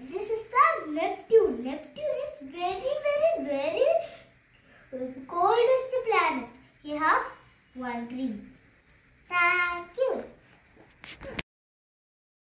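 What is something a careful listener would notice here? A young boy speaks with animation close by.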